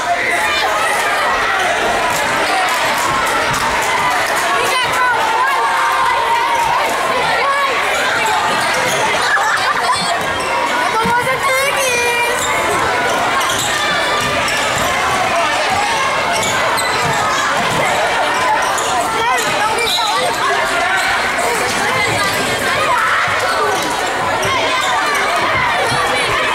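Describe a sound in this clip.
A crowd of spectators cheers and chatters throughout in a large echoing gym.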